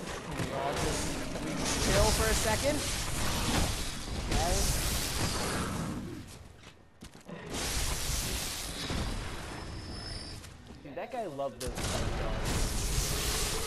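Blades slash and thud into flesh in quick bursts.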